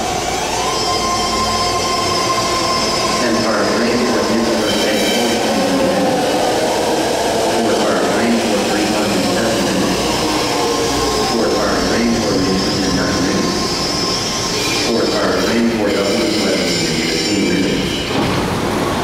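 Train brakes squeal and whine as the train slows.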